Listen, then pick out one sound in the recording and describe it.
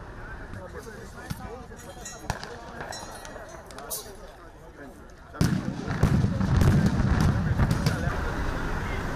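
Tear gas grenades bang loudly nearby.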